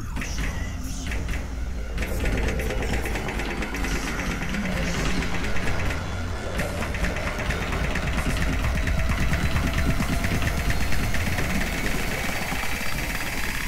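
Keyboard keys clack rapidly.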